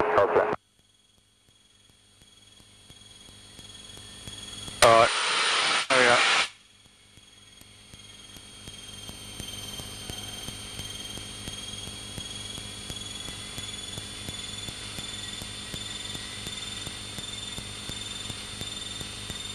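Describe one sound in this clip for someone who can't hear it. A light aircraft engine drones steadily with a whirring propeller.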